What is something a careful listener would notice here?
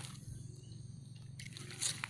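A fishing reel clicks as it is wound.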